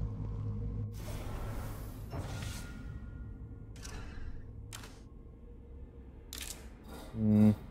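Short clicks sound in quick succession.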